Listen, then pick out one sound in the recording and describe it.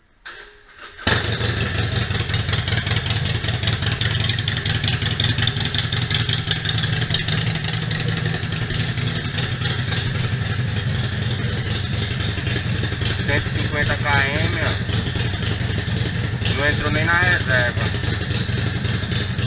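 A Harley-Davidson Sportster V-twin motorcycle engine rumbles while cruising.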